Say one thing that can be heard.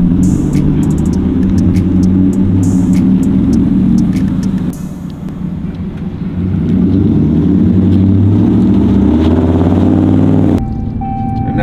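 A truck engine rumbles deeply and revs as the truck drives past.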